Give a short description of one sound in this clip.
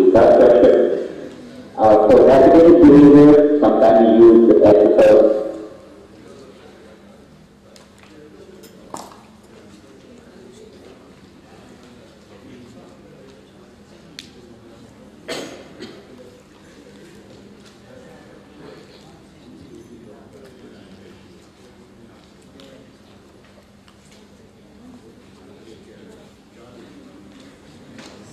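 A middle-aged man speaks calmly through a loudspeaker in a large room, loud at first and then much fainter.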